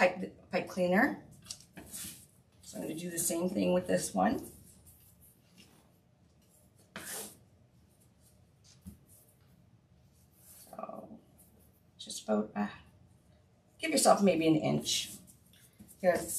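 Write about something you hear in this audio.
Stiff ribbon rustles and crinkles as it is folded.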